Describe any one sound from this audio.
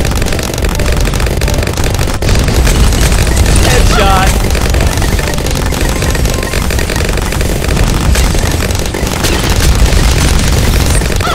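Cartoon balloons pop in rapid bursts.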